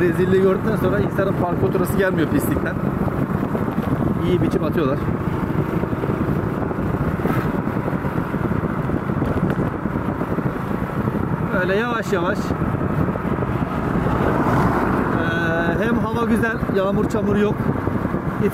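Plastic bags rustle and flap in the wind.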